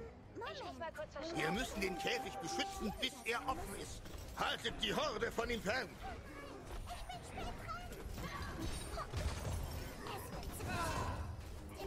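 Fantasy game sound effects crackle and whoosh as spells are cast.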